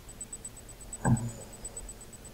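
A menu button clicks once with a short sharp tap.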